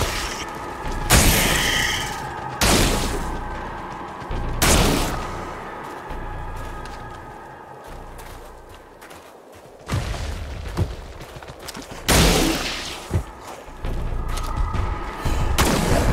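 A rifle fires sharp bursts of shots that echo.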